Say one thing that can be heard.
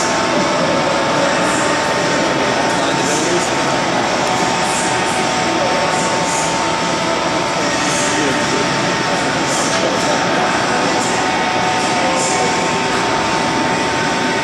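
Skate blades scrape and hiss across ice in a large echoing hall.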